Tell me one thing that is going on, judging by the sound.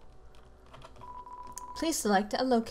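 Soft electronic blips sound as a message types out.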